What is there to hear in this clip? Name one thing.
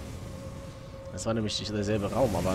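A young man talks through a microphone.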